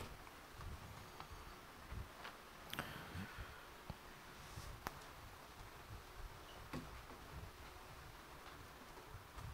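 A man speaks quietly and slowly into a microphone.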